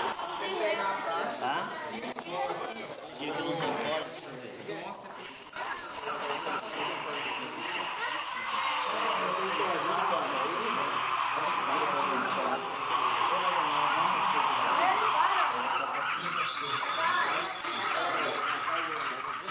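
Many children and adults chatter all around outdoors.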